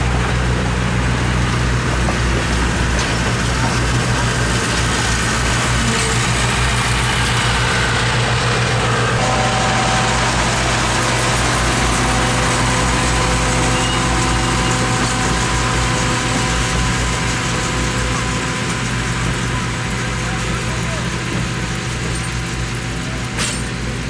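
Passenger train cars roll past close by with a steady rumble.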